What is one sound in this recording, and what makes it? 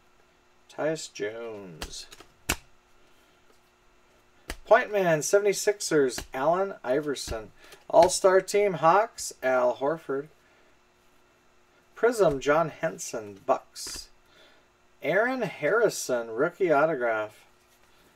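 Trading cards slide and rustle against each other in hands.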